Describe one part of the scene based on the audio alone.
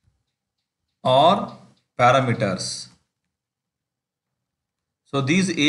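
A man speaks calmly and clearly into a microphone, in short phrases with pauses.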